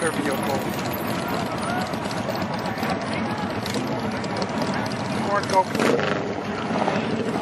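Go-kart engines drone along a street.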